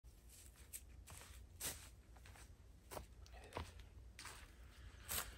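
Footsteps crunch on dry leaves and twigs outdoors.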